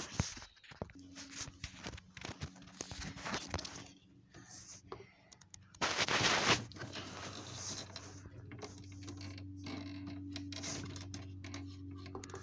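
A small fan hums steadily.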